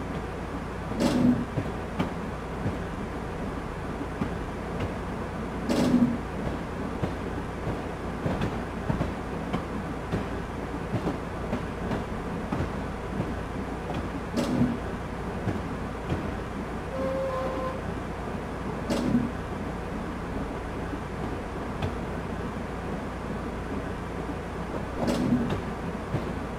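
Train wheels clack over rail joints at regular intervals.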